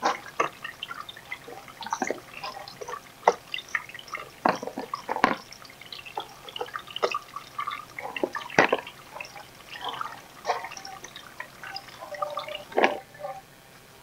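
Leaves rustle and plastic pots knock softly as plants are handled close by.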